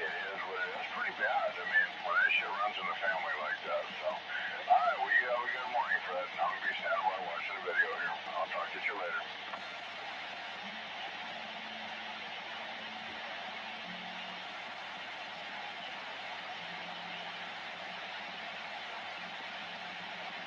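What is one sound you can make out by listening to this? A radio hisses with steady static through a loudspeaker.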